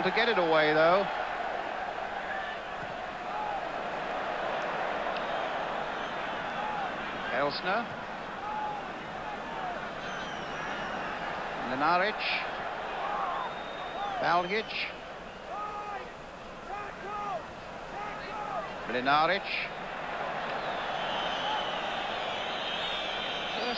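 A large crowd murmurs and chants steadily in an open stadium.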